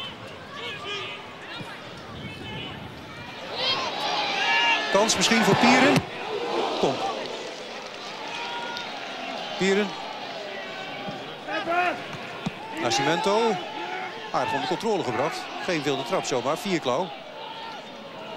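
A crowd in a stadium murmurs and cheers outdoors.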